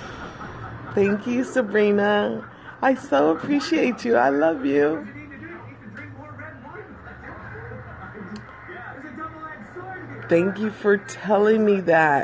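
A middle-aged woman talks animatedly close to a phone microphone.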